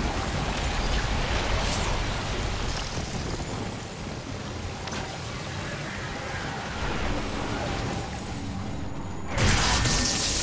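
Footsteps tread steadily on a hard walkway.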